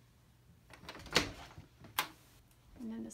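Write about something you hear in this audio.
A door latch clicks as a door is pulled open.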